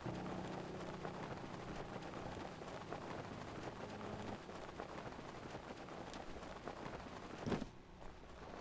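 Wind rushes steadily during a glide, then stops.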